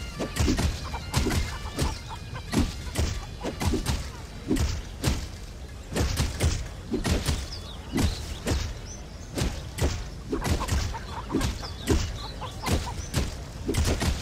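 Sword blows land again and again in quick, heavy hits.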